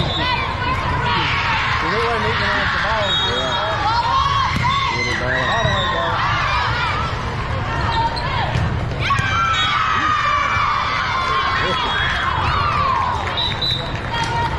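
Young women shout to each other as they play.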